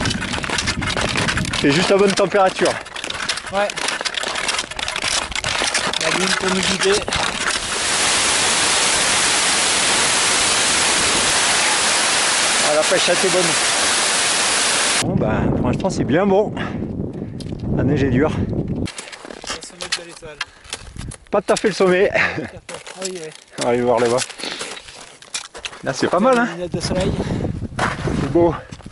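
A man talks breathlessly close by, outdoors.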